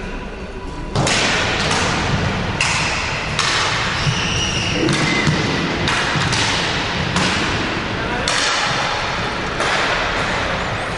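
A crowd of spectators murmurs and cheers in the distance.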